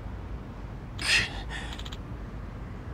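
A young man groans weakly in pain.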